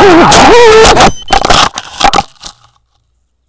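Something crashes through branches and thuds onto the ground.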